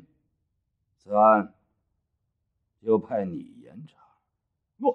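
A man speaks slowly and sternly, close by.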